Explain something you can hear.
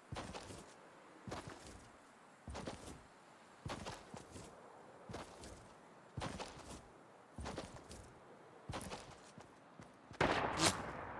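Footsteps run on grass.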